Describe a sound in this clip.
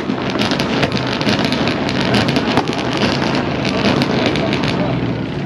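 Race car engines rumble loudly nearby outdoors.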